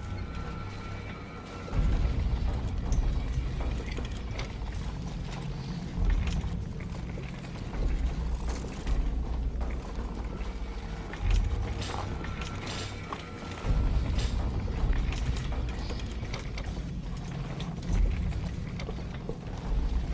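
Wheels of a trolley rattle as it is pushed over a metal floor.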